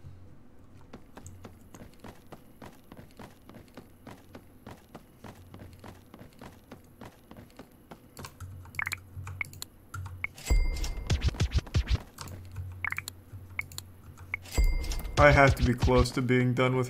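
Footsteps tap quickly and steadily on wooden boards.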